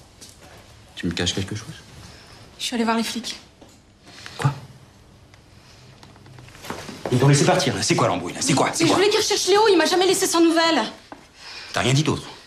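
A young man speaks tensely and close by.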